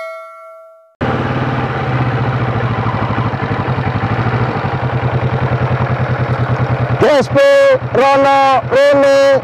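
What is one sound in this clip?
A motorcycle engine idles with a steady, throbbing rumble close by.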